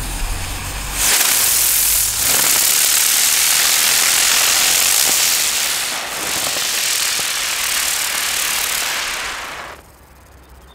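A firework fountain hisses and crackles loudly, spraying sparks.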